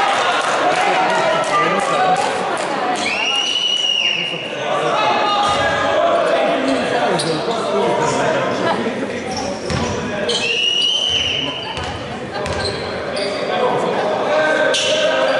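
Young men call out to each other in an echoing hall.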